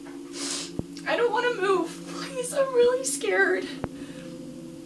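A young woman talks close by, cheerfully.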